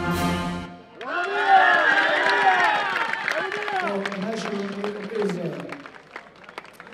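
A group of men sing loudly together close by.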